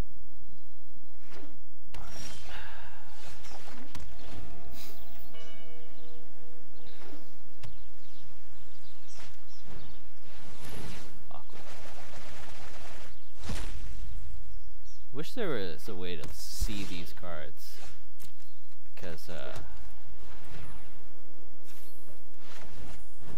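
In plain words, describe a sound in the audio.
Cards swish and thud as they are played.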